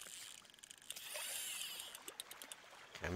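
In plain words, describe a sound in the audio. A fishing reel whirs as a line is cast out.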